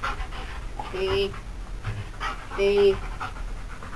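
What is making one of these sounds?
A dog yelps in short, high-pitched cries.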